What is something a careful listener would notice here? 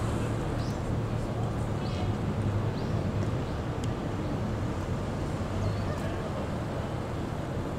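A car engine hums as a car drives slowly past.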